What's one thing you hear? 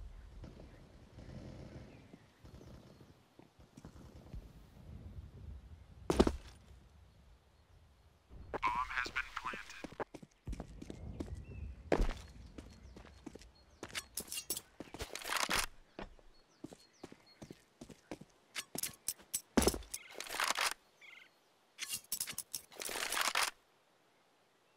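Footsteps scuff and tap on hard ground.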